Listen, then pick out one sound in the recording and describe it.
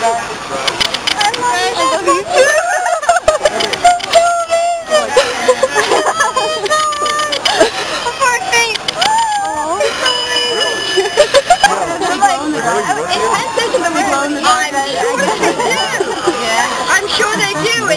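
Young women talk and laugh excitedly up close.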